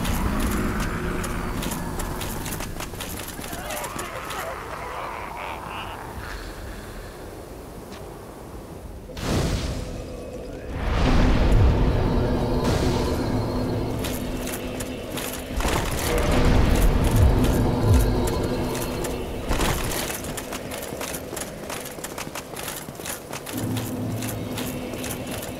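Armoured game figures' footsteps clatter on stone.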